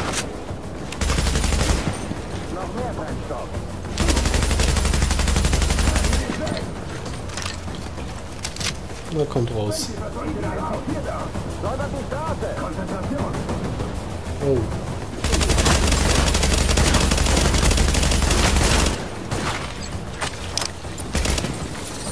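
Automatic rifle fire rattles in loud bursts.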